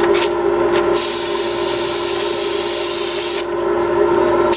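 A spray gun hisses as it sprays paint.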